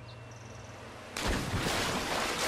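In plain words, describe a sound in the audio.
A body plunges into water with a heavy splash.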